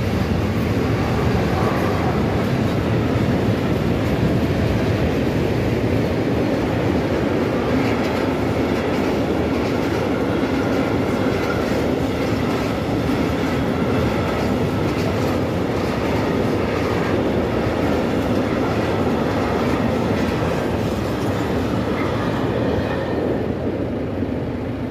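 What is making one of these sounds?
A level crossing bell rings steadily.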